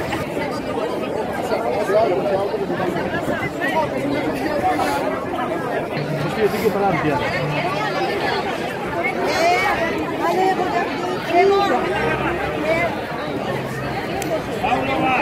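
A crowd of women and men chatter and talk close by, outdoors.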